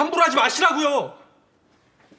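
A young man speaks with emotion, close by.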